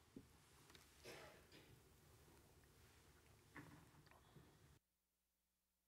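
A mug knocks on a wooden lectern.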